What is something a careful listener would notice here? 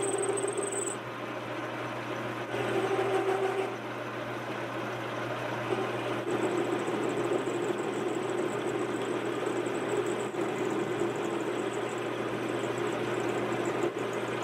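A cutting tool scrapes and whines against spinning metal.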